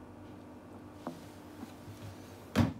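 A guitar string is plucked softly.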